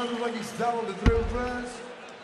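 A dart thuds into a dartboard.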